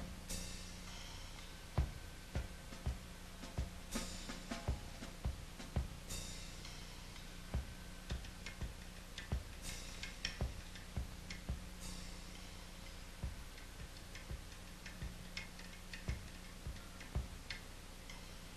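Drums are struck in a loose, uneven pattern.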